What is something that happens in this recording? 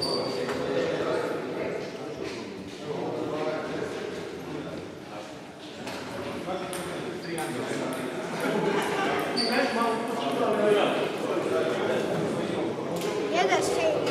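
Children talk and chatter close by in an echoing hall.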